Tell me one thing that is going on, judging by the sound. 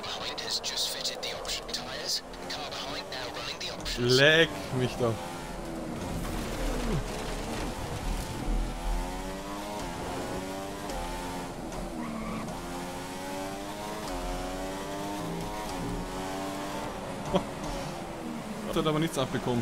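A racing car engine roars, revving up and dropping as it shifts gears.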